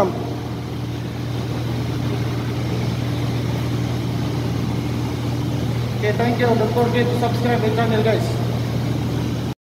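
Pump machinery hums steadily and loudly in an echoing room.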